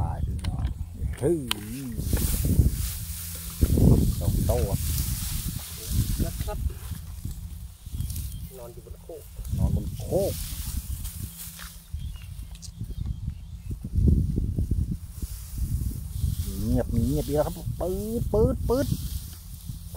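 Dry rice stalks rustle and crackle as they are pushed aside.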